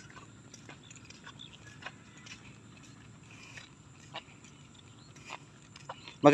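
Bare feet squelch softly on a muddy path.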